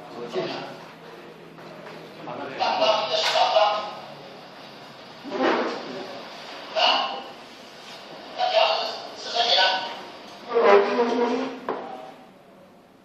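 A middle-aged man speaks close by, with animation.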